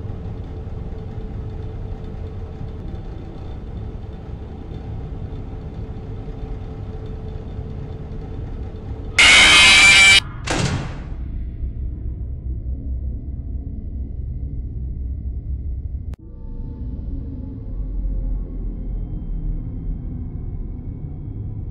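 A low droning hum fills the background.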